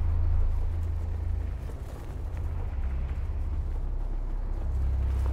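Huge hovering machines give off a deep, steady rumbling hum.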